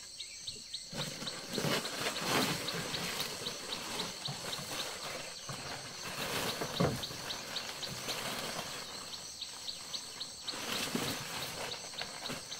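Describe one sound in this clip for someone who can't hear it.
A plastic tarp rustles and crinkles as it is handled.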